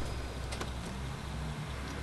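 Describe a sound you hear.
Rain patters steadily outside.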